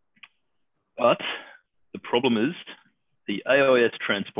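A man speaks calmly through an online call.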